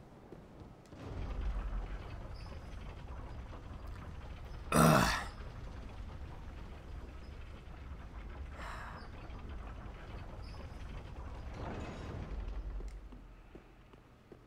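A stone lift rumbles steadily as it rides.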